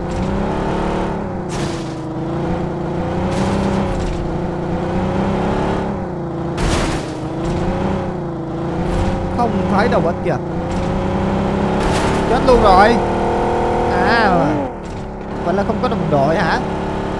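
A car engine hums steadily and rises and falls in pitch as the car drives over bumpy ground.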